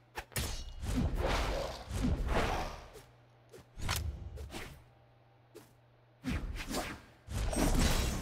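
Swords whoosh and clash in a fast fight, in short bursts.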